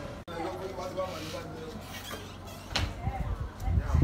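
A wooden door creaks open and knocks shut.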